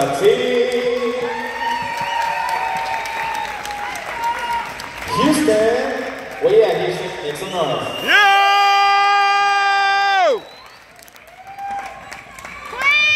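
An audience cheers and shouts in a large echoing hall.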